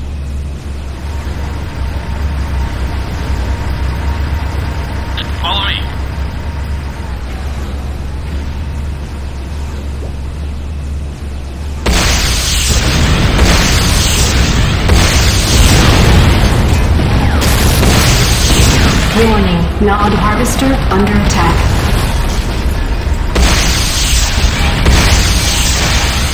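A heavy vehicle engine rumbles.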